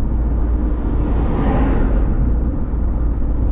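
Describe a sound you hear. A truck passes closely in the other direction with a brief whoosh.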